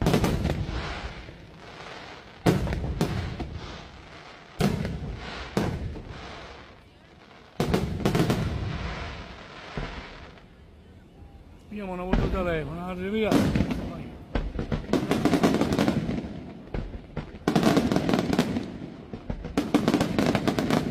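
Fireworks burst with loud booms and crackles outdoors.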